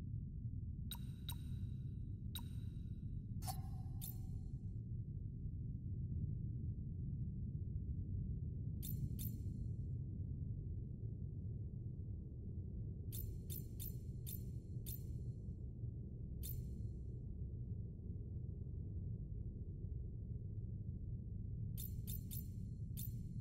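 Short menu clicks and ticks sound in quick bursts.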